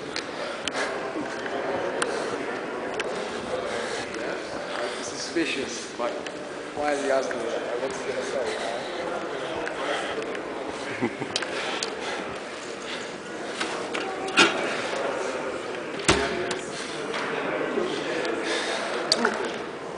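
Men talk in a large echoing hall.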